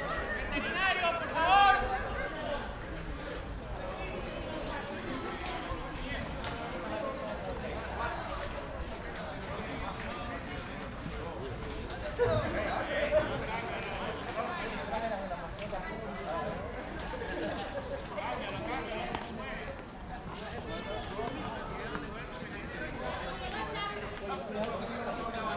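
Young men call out and talk across an open outdoor field, heard from a distance.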